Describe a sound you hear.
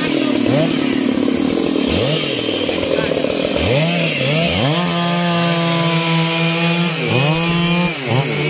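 A chainsaw cuts through a thick log.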